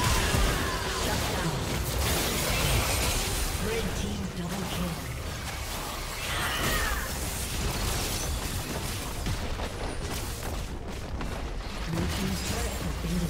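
Game spell effects whoosh, zap and explode in quick bursts.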